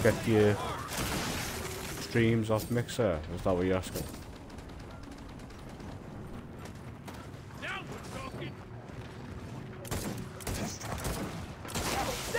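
Gunfire rattles in short bursts.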